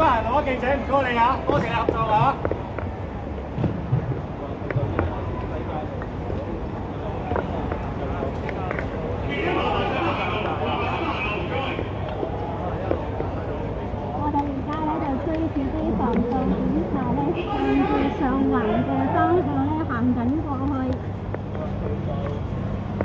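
Several men and women shout and talk excitedly nearby, outdoors in a street.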